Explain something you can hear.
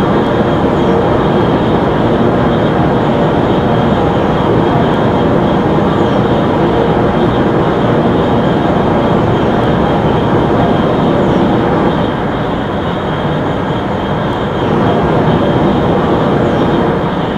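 A high-speed train roars loudly through a tunnel at a steady pace.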